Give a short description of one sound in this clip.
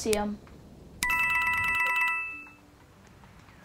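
A bright coin chime rings out and fades.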